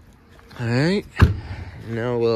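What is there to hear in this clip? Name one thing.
A compartment latch clicks open.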